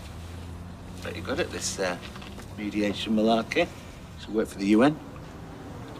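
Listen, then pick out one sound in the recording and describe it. A middle-aged man speaks firmly, close by.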